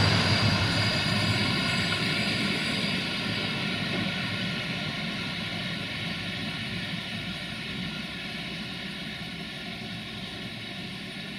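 A passenger train's wheels rumble and clatter on the rails as it pulls away and fades.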